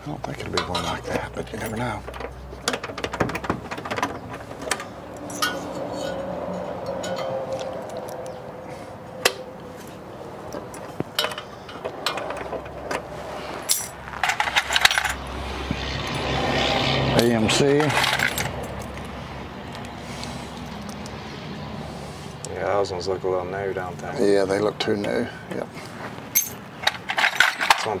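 Metal parts clink and tap against a car's chrome trim.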